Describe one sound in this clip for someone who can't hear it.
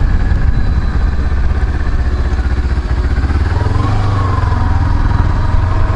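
A motorcycle engine rumbles steadily as the bike rides along.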